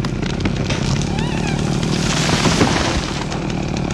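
A tree trunk cracks and crashes to the ground.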